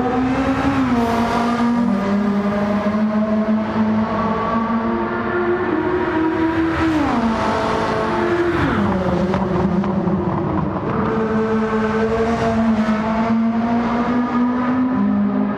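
A race car engine roars at high revs, its pitch dropping at each gear shift.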